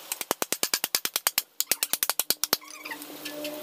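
A hammer taps rapidly on wood.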